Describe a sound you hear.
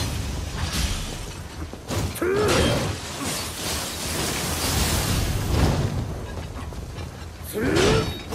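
A monster snarls and roars.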